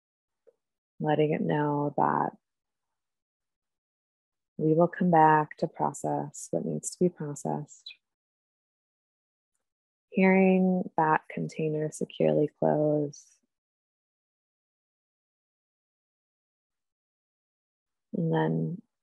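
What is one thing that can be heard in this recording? A young woman speaks calmly over an online call, in bursts with pauses.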